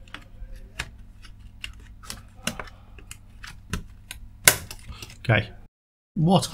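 Plastic clicks and snaps as a memory module is pressed into its slot.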